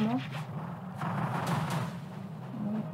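A whirlwind whooshes as it spins.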